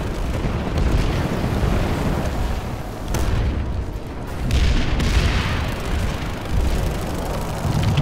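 Electric energy barriers crackle and hum.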